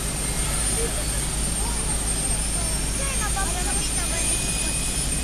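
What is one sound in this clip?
A helicopter engine roars steadily close by.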